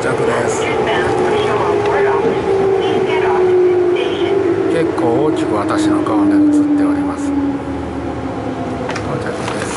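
A train's motor whines and slowly falls in pitch as the train slows.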